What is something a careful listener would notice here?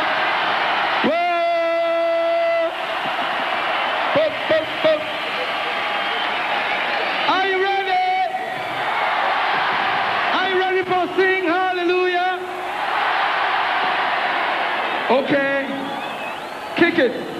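A man sings into a microphone, heard through loudspeakers.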